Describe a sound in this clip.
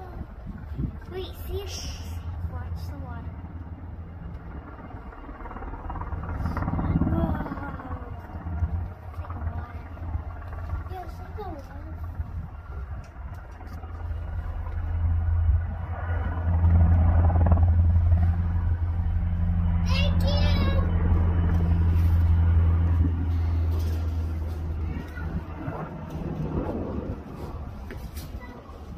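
A helicopter's rotor thumps overhead, growing louder as it passes close and then fading.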